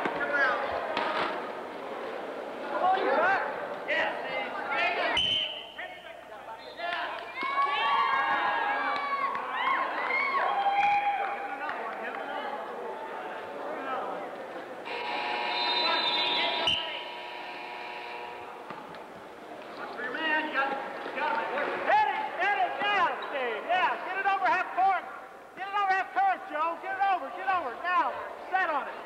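Young people shout and call out to each other in a large echoing hall.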